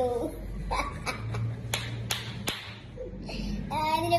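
A young boy laughs loudly and excitedly close by.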